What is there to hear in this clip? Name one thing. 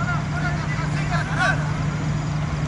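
Men shout across an outdoor field from a distance.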